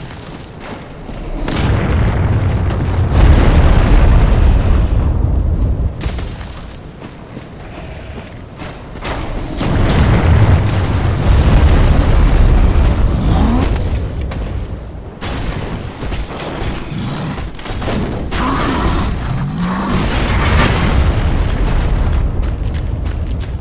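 Strong wind howls in gusts through a snowstorm.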